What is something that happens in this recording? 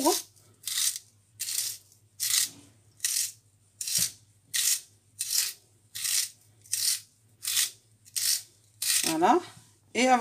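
A hand peeler scrapes in quick, even strokes.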